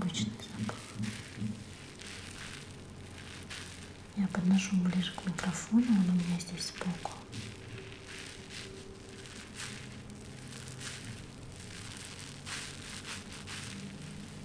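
Fingers rub and squeeze a sponge with a soft, scratchy rustle.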